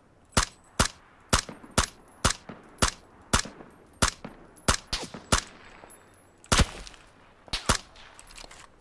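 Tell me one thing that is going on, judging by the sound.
A rifle fires single shots in a steady rhythm, each with a short echo.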